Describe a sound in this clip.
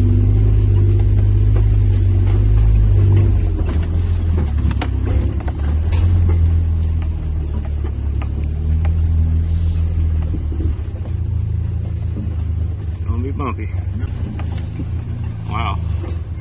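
Rocks and dirt knock and crunch under tyres.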